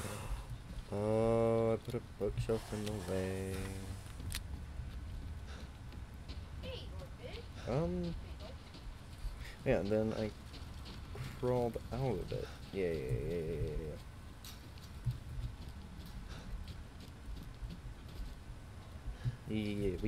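A young man talks calmly into a microphone in short bursts.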